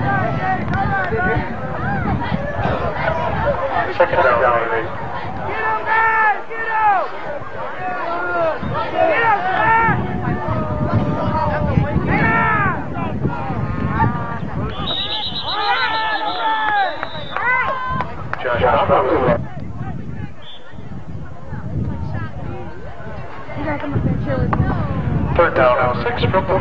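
A crowd cheers and shouts outdoors in an open stadium.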